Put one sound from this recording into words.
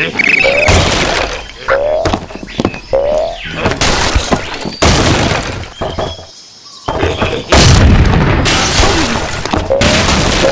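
Wooden blocks crash and clatter as a structure collapses.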